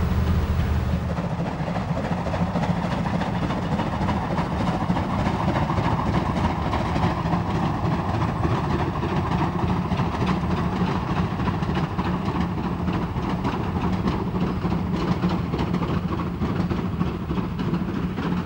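A steam locomotive chuffs rhythmically as it pulls a train past in the distance.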